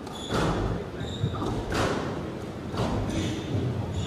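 A squash ball is struck with a racket and smacks against the court walls.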